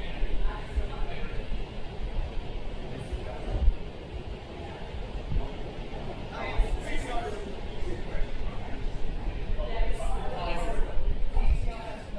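A crowd of men and women chatter in an echoing hall.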